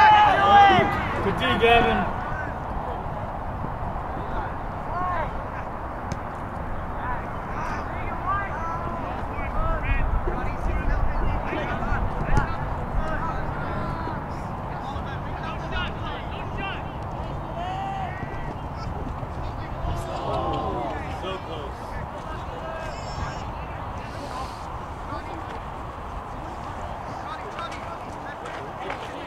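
Spectators shout and cheer outdoors, close by.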